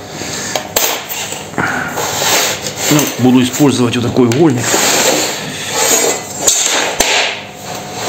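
Metal rulers clatter and tap against a hard surface.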